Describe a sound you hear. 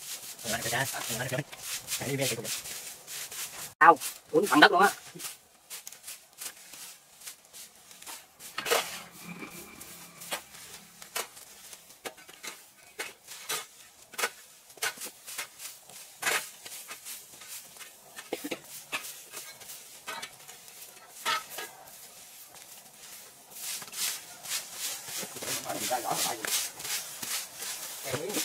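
A rake scrapes through dry leaves and twigs.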